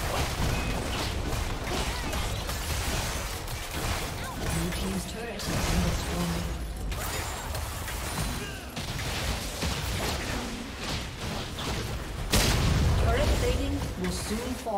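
Spell effects and attacks clash and crackle in a video game fight.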